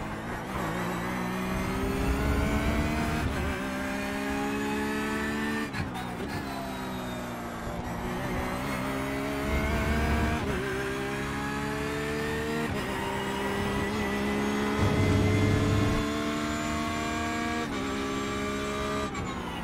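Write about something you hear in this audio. A racing car engine revs high and climbs through the gears, dropping in pitch at each gear change.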